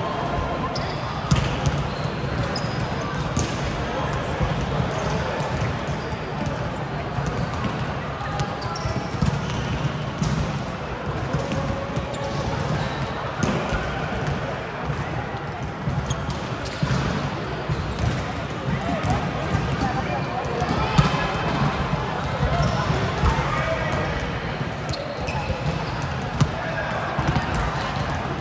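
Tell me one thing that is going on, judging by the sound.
Young women call out and chatter during play.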